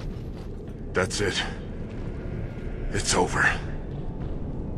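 A man speaks in a low, sad voice, close up.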